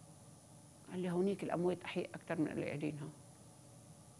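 An elderly woman speaks calmly and clearly into a microphone.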